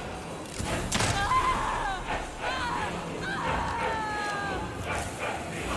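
A burning creature shrieks.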